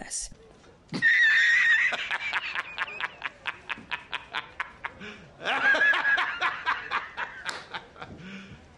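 A middle-aged man laughs loudly in quick bursts.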